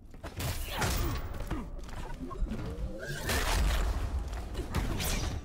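Heavy blows and energy blasts crash and whoosh in quick bursts.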